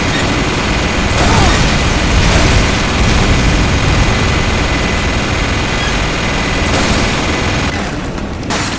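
Gunfire and explosions crackle and boom in a game battle.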